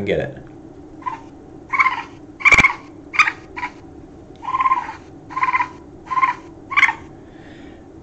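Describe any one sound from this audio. A baby animal squeaks in short high cries.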